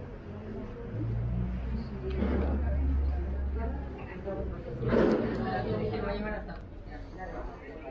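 A small group of adults chat at outdoor tables a short way off.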